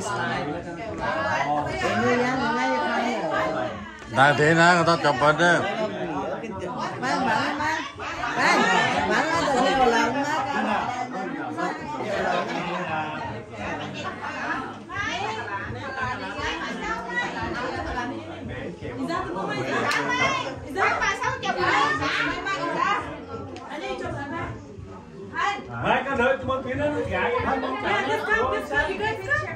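Several women talk and laugh together close by.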